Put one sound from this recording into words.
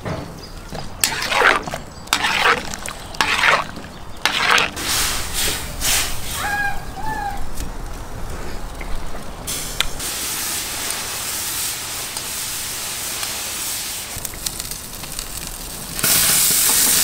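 Broth sizzles and bubbles in a hot pot.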